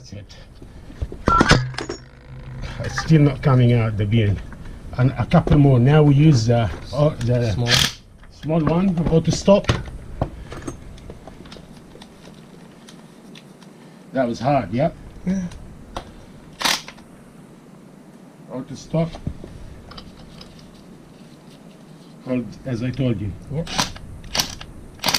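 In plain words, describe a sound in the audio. Metal parts clink and clank as a gear puller is adjusted.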